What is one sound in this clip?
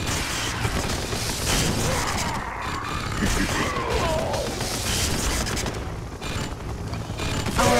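Gunfire and explosions crackle from a battle between game units.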